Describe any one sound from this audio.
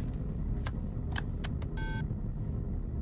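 Phone keypad buttons click and beep as a number is dialled.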